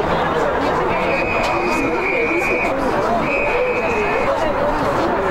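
An umpire blows two long whistle blasts.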